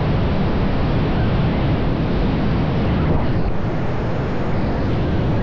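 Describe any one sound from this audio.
Strong wind roars loudly past in free fall.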